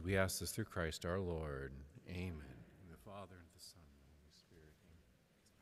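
A man speaks into a microphone in a large echoing hall, slowly and solemnly.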